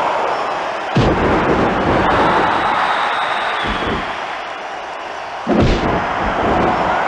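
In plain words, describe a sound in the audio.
A wrestler slams down onto the ring mat with a loud crash.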